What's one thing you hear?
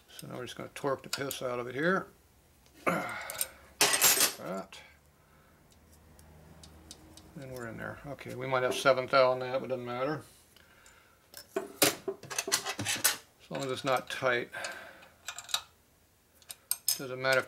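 Metal tools clink and tap against an engine block.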